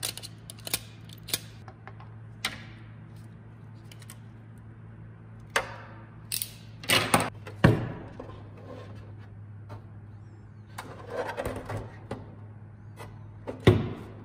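Hard plastic parts click and tap as they are handled.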